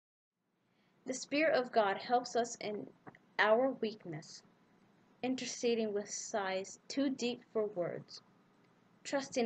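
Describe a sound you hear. A young woman speaks calmly and softly, close to a microphone.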